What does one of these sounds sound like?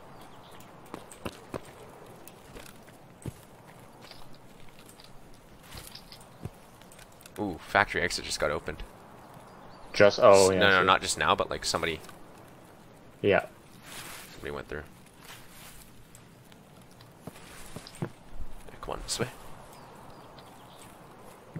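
Footsteps rustle through grass and bushes.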